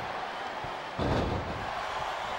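A heavy blow thuds against a body.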